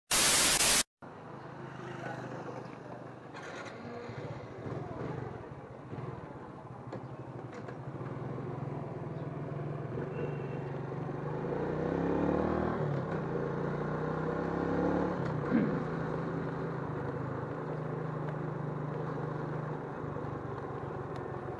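A scooter engine idles and hums steadily.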